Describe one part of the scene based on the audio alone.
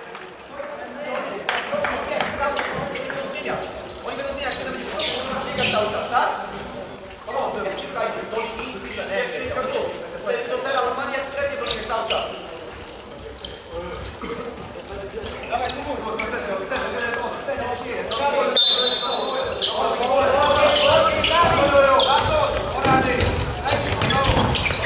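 Sports shoes squeak on a hard court.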